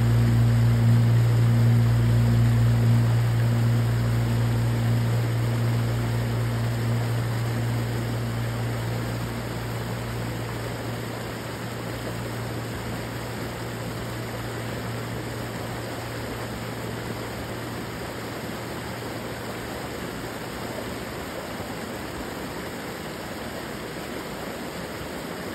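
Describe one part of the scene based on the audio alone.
A small creek waterfall splashes over rocks into a pool.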